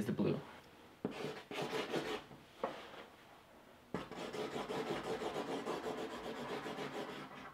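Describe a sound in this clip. A marker squeaks and scribbles on a whiteboard.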